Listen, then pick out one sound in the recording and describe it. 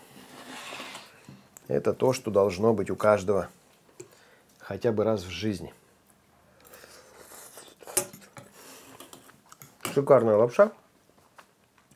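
A spoon scrapes and clinks in a metal pot.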